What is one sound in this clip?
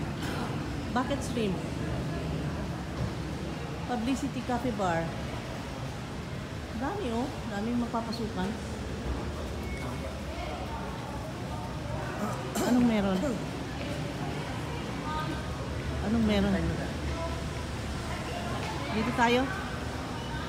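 A crowd of men and women chatters quietly in the distance.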